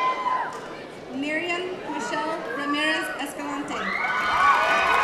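A woman reads out through a loudspeaker in a large echoing hall.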